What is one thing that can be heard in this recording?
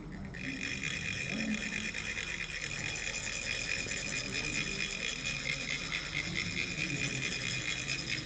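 Metal funnels rasp rapidly and steadily as sand trickles out.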